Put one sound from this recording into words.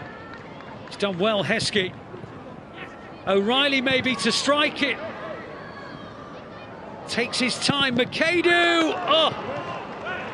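Young men shout to each other on an open field.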